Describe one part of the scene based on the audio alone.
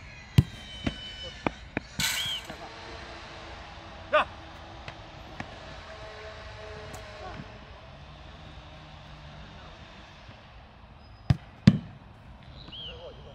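A goalkeeper thuds onto the grass as he dives.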